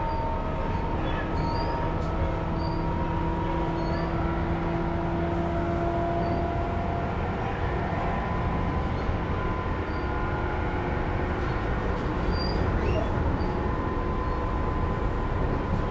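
An electric train rumbles along the tracks with a steady hum.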